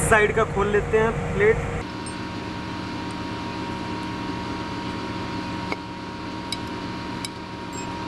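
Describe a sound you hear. A screwdriver scrapes and taps against metal.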